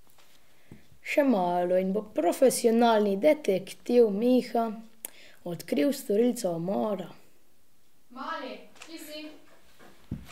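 A boy speaks calmly and close by.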